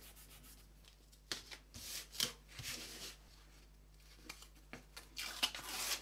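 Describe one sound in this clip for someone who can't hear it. Hands rub tape flat against a board.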